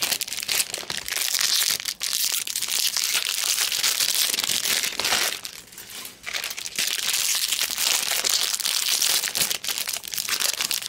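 Foil card wrappers crinkle and rustle close by.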